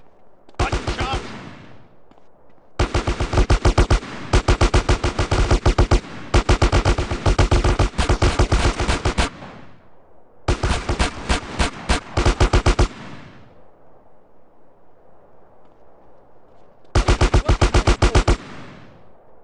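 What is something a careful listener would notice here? Guns fire in rapid, loud bursts of rattling shots.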